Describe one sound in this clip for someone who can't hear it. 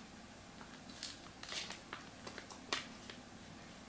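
Plastic wrapping crackles and tears as it is peeled open.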